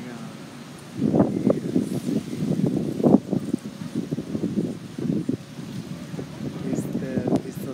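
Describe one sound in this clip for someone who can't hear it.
A middle-aged woman talks calmly and cheerfully close to the microphone, outdoors.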